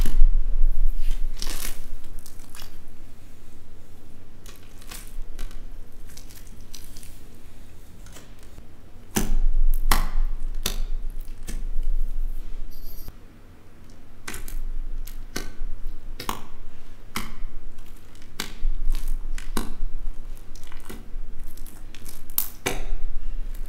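Sticky slime crackles and pops as fingers squeeze and poke it.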